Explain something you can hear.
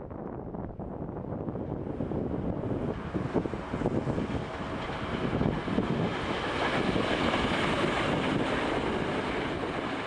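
A train approaches and rolls past close by, its roar and screech growing louder.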